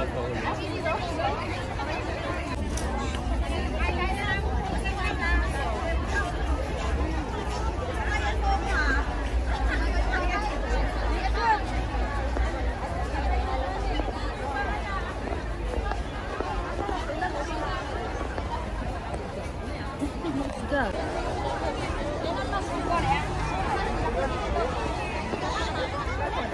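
A crowd of men and women chatters all around outdoors.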